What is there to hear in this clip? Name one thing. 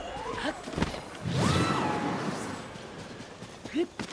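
A strong gust of wind whooshes past.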